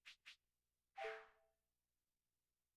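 A menu confirmation sound chimes once.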